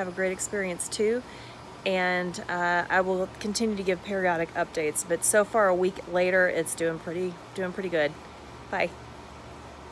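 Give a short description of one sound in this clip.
A middle-aged woman talks warmly and close up.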